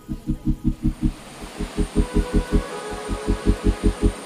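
Water rushes and gurgles over rocks in a shallow stream.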